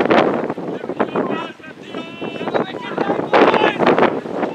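Men call out to each other across an open field.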